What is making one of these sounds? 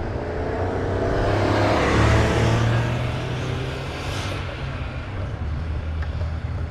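A car passes close by and pulls away up the road.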